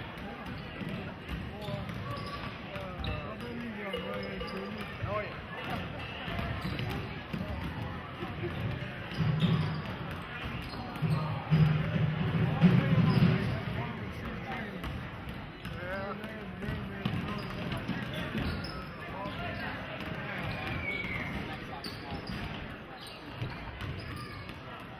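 Basketballs bounce on a hard floor.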